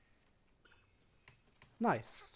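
A magical sparkle chimes and shimmers.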